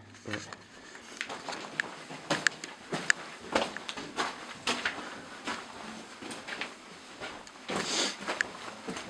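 Footsteps crunch on loose gravel and rock.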